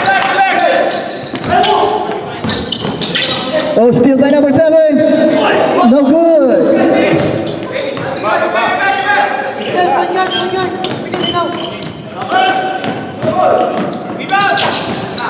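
Young men shout and call out to each other during play.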